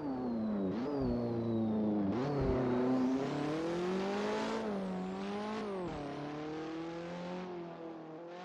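A race car engine revs hard, rising and dropping in pitch with gear shifts.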